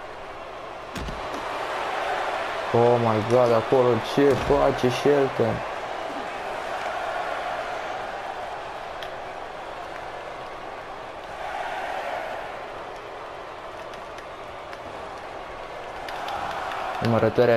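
A large crowd cheers steadily in an echoing arena.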